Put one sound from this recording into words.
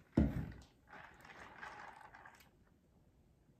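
A young woman slurps a drink loudly through a straw, close up.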